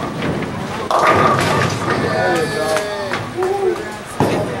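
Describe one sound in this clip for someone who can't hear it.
Bowling pins crash and clatter in a large echoing hall.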